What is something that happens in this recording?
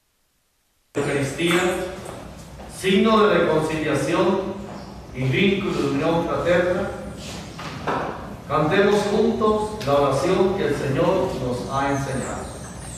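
A man speaks calmly into a microphone, heard through a loudspeaker in a reverberant room.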